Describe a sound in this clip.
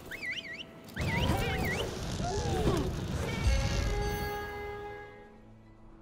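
Weapons swing and clash in a fierce fight.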